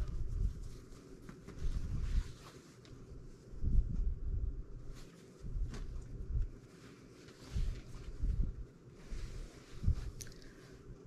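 Fabric rustles and swishes as it is handled.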